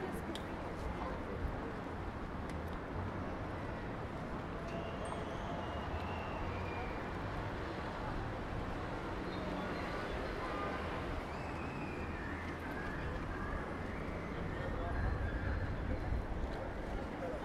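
City traffic rumbles nearby.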